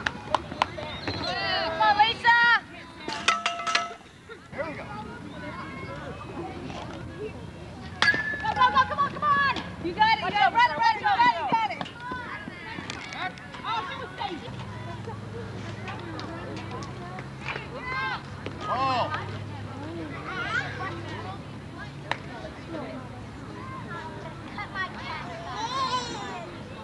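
Women shout and call out across an open field.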